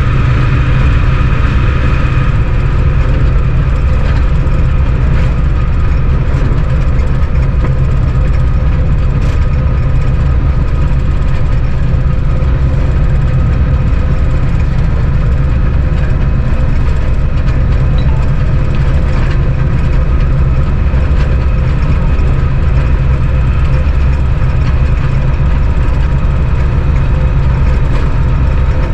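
A locomotive engine rumbles steadily, heard up close.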